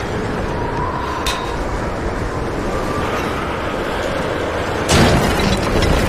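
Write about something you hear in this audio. A wooden winch creaks as it is cranked.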